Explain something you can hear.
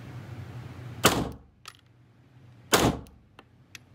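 A pistol fires loud shots that echo briefly.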